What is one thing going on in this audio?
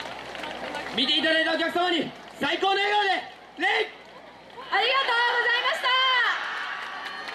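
A group of young performers shout loud calls in unison.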